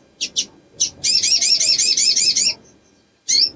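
A small bird sings a fast, repeating high trill.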